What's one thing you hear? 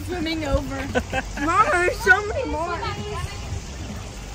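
A young girl speaks animatedly close by.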